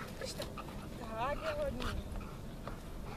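A young person calls out to a dog nearby.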